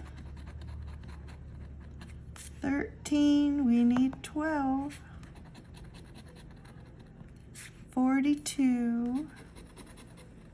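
A coin scrapes and scratches against stiff card.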